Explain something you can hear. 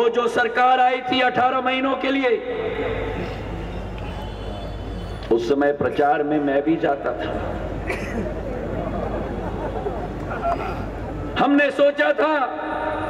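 A young man speaks forcefully into a microphone over loudspeakers.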